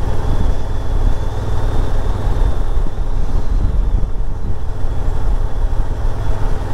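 Wind buffets loudly against a helmet microphone.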